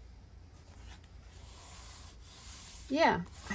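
A stiff paper page rustles as it is turned.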